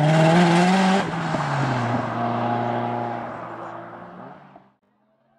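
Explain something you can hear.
A car engine idles roughly, then fades away.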